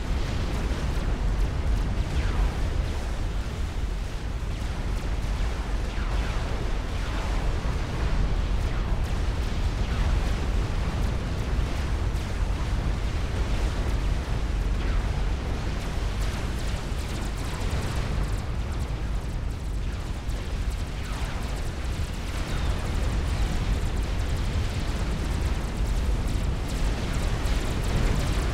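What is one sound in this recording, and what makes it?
Explosions and weapon fire boom and crackle without a break.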